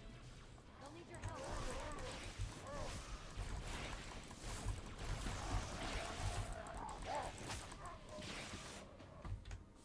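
An energy sword hums and slashes with sharp whooshes.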